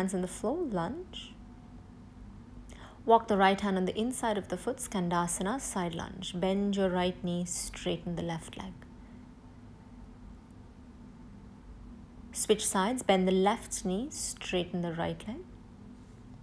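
A young woman speaks calmly, close by, with pauses.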